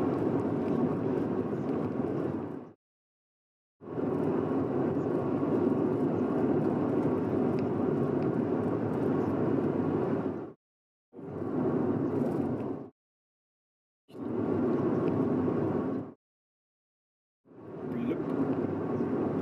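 A car drives along a road with a steady rumble of tyres and engine.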